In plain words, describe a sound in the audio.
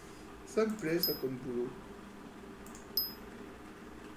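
A short electronic chime sounds twice.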